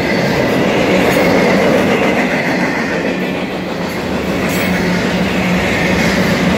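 A long freight train rumbles past close by.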